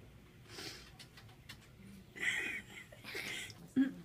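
A young woman laughs softly, close by.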